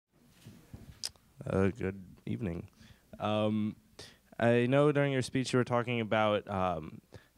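A man speaks through a microphone, heard from across a large room.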